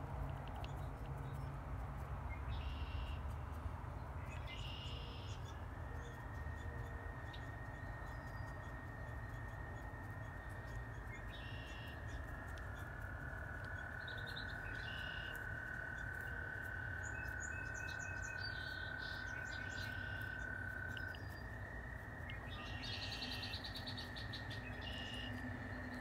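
A brush dabs softly against a small model.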